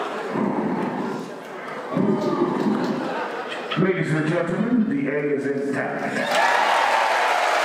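A man speaks loudly.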